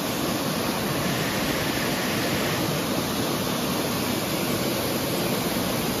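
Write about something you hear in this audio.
A waterfall rushes and splashes loudly over rocks close by.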